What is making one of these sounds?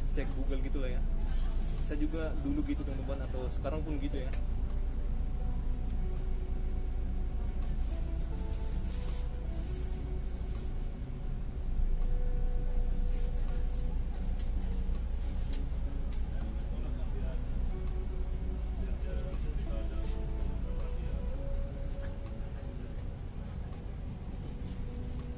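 A bus engine rumbles low and steady from inside.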